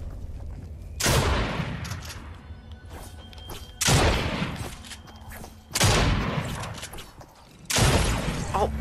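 Shotguns fire several loud blasts at close range.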